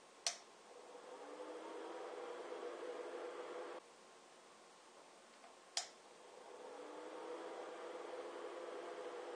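A small fan whirs, spinning up and then stopping.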